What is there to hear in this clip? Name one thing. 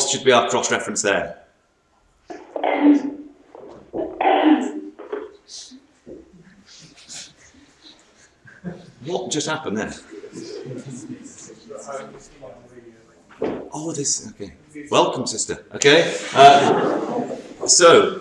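A middle-aged man speaks calmly and closely into a microphone, with pauses.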